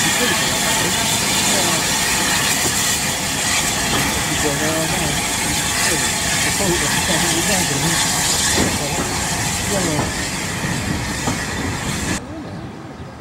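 A steam locomotive chuffs and rumbles loudly close by.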